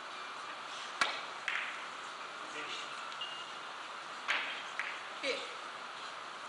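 Billiard balls knock sharply against each other and the cushions.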